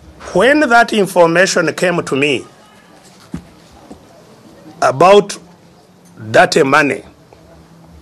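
An elderly man speaks emphatically into a microphone, in short bursts with pauses.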